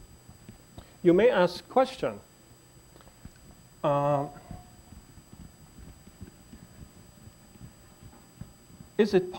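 A man lectures through a microphone, speaking in short bursts with pauses.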